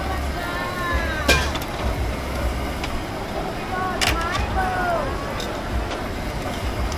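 Men and women chatter nearby in a busy crowd.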